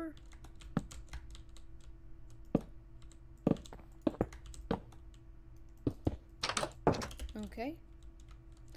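Blocks are placed with short, dull knocks.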